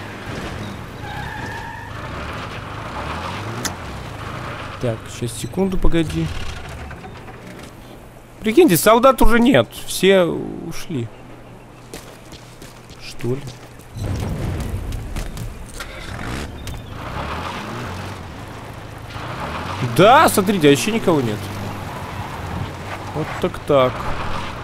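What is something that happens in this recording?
A vehicle engine rumbles as a jeep drives over dirt.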